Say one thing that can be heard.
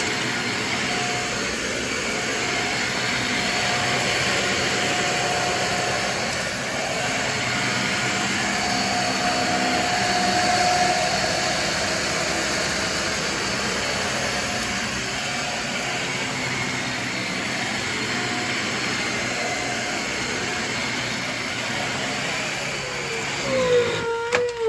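A vacuum cleaner roars steadily.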